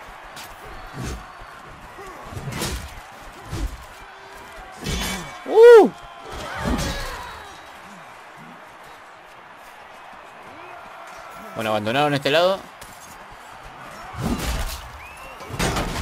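Metal weapons clash and strike armour in close combat.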